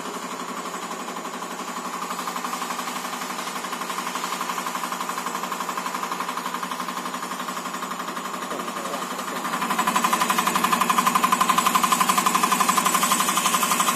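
A machine's fuel injector ticks rapidly and steadily, growing louder partway through.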